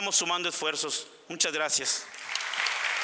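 A man speaks formally into a microphone.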